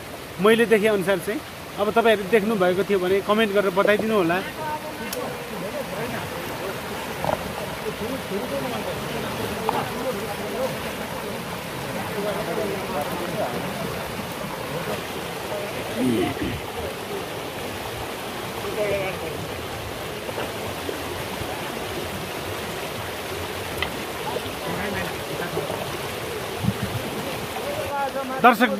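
Water rushes steadily over rocks nearby.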